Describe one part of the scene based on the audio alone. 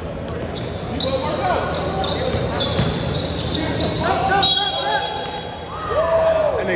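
Young men shout and call out in a large echoing gym.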